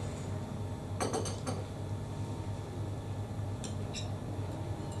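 A cup clinks against a saucer.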